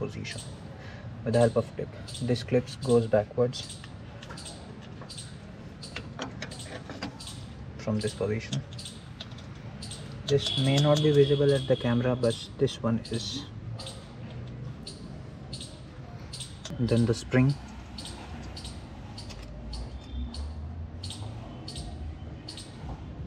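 Metal brake parts clink and scrape.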